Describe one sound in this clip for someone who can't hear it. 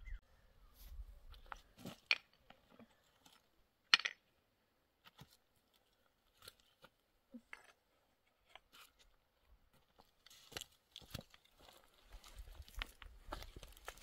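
Stones clatter as a woman picks among loose rocks.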